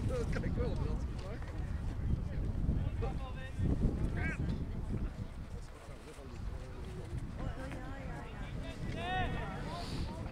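Adult men talk casually close by, outdoors.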